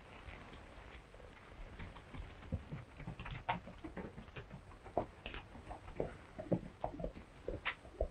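A horse's hooves clop on a dirt road and fade away.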